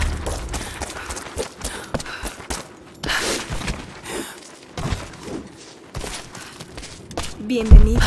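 Hands scrape and thud against stone while climbing.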